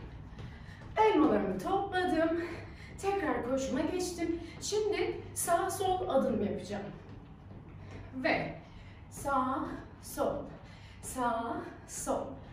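A young woman talks with animation, close by.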